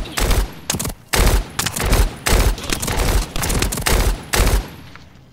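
Rapid gunshots fire in repeated bursts.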